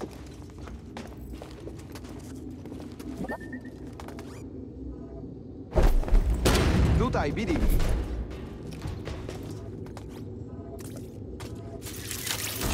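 Footsteps walk over a hard metal floor.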